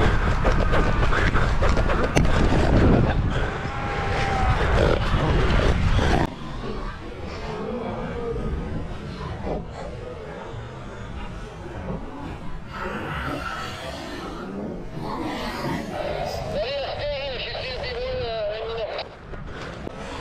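Wind blusters outdoors.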